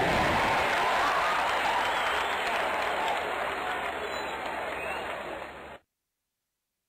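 Loud rock music plays, then fades and stops abruptly.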